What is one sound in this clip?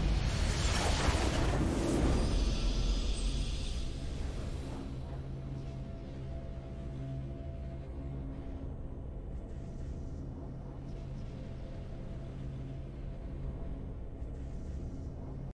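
A triumphant fanfare swells and rings out.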